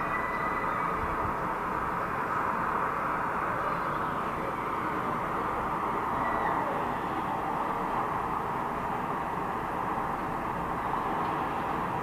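Cars and vans rush past steadily on a road, with tyres humming.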